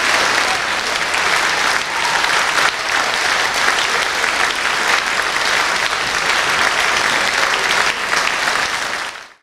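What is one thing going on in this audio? A large audience applauds in a big echoing hall.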